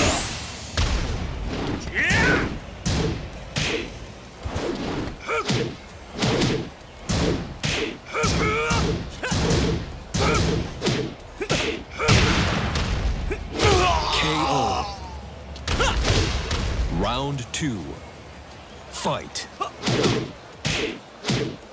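Punches and kicks land with heavy thuds in quick bursts.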